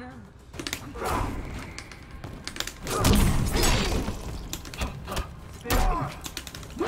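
Fighters' punches and kicks land with heavy thuds.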